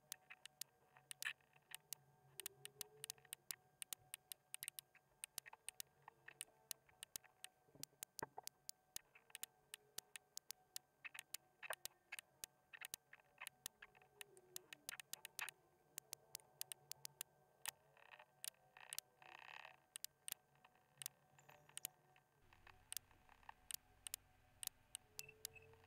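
A computer mouse clicks rapidly and repeatedly, close by.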